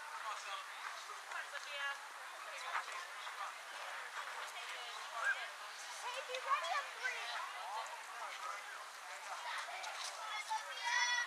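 Young girls shout and chatter across an open outdoor field.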